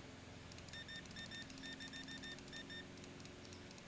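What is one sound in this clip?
A checkout scanner beeps in quick succession.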